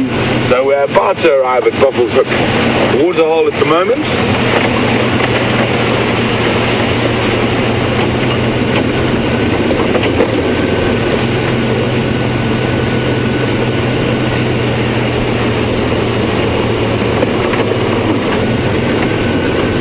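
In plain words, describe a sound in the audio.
An engine rumbles steadily as an open vehicle drives along.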